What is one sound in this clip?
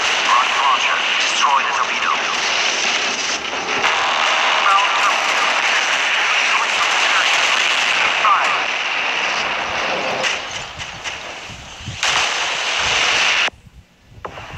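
Explosions boom and crackle in a sea battle.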